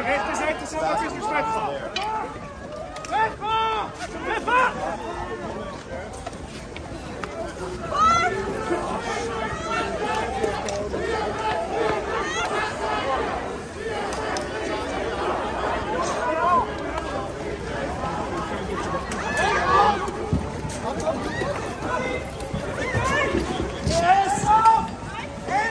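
A crowd of men and women shouts and chants loudly outdoors.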